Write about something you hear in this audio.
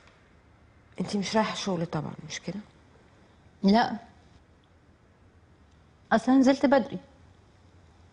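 A middle-aged woman answers calmly close by.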